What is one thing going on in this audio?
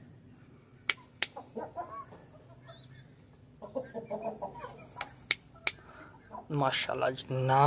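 A baby bird cheeps softly up close.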